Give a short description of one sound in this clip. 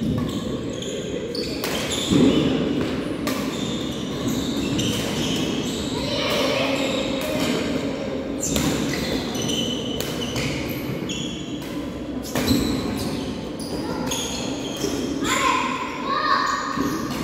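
Rackets strike a shuttlecock in a rally, echoing in a large hall.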